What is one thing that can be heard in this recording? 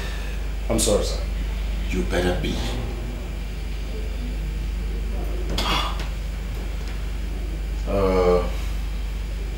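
A man speaks firmly in short bursts, close by.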